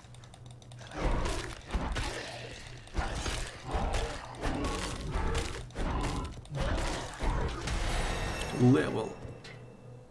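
Game combat sounds clash and thud.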